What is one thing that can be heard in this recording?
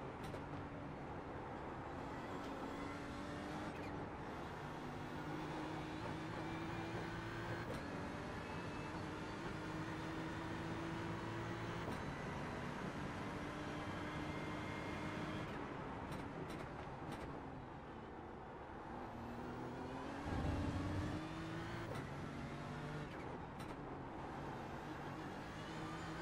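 A racing car engine roars, rising in pitch as it speeds up and dropping as it shifts and brakes.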